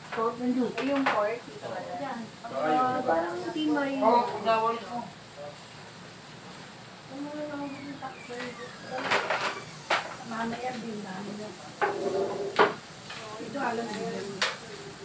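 A young woman and young men talk nearby.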